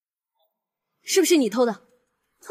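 A woman speaks close by in a questioning tone.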